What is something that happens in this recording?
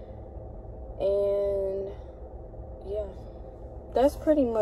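A young girl sings short, drawn-out notes close by.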